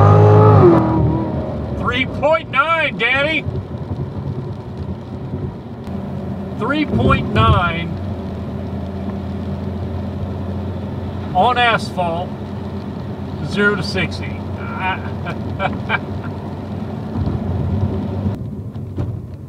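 A car engine hums steadily at cruising speed.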